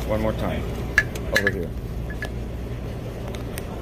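Metal pliers tap sharply against a metal compressor.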